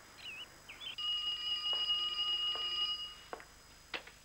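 A telephone rings.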